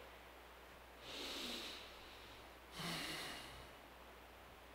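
An elderly man breathes out heavily through his nose.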